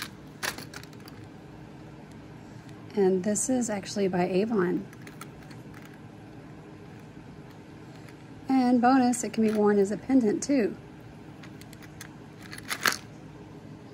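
Metal jewellery clinks softly as it is handled.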